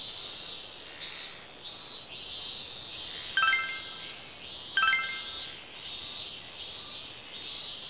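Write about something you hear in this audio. Soft electronic blips patter in short bursts.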